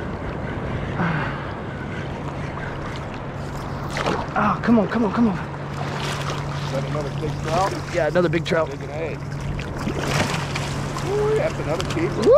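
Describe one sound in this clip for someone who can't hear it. Small waves lap and slosh close by.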